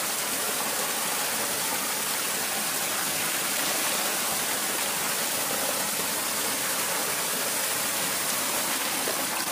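Shallow water rushes and splashes steadily.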